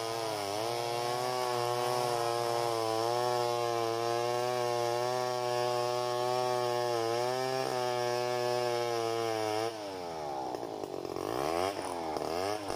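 A chainsaw engine runs steadily close by, then revs up and down.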